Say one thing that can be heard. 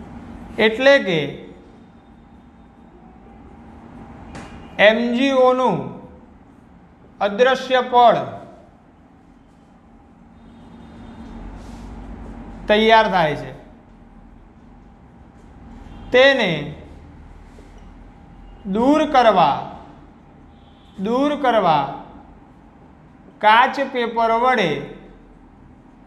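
A young man speaks in short, lively bursts with long pauses, close by.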